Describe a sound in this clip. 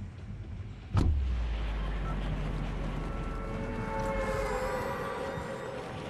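Wind rushes loudly during a skydiving fall.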